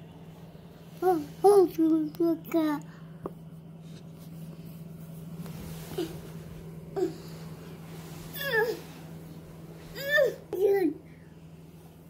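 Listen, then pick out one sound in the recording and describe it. A young child babbles and makes short cries close by.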